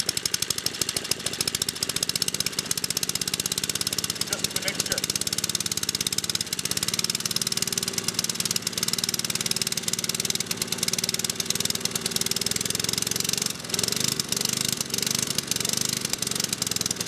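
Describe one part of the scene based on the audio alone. A small engine runs with a fast, steady chugging and rattle.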